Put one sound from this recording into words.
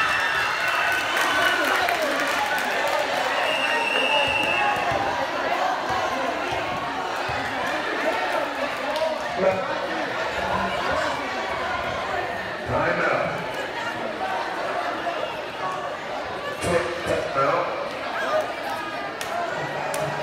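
A large crowd of young people chatters and cheers in a big echoing hall.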